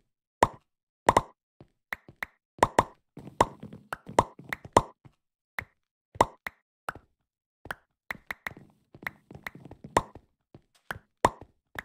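Sharp knocks and clicks come in quick bursts as blocks are struck and broken.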